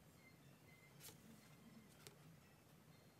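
A paper card rustles close by.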